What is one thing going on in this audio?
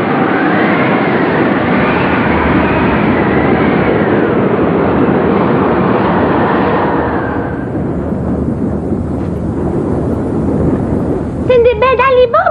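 Rough waves surge and wash.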